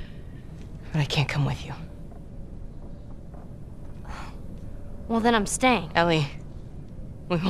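A girl speaks pleadingly.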